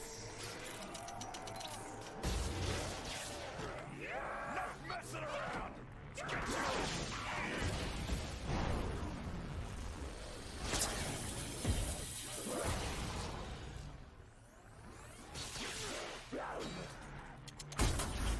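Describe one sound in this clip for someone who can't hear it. Gunfire and blasts go off in bursts.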